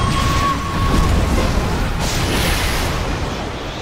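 Explosions boom during a game fight.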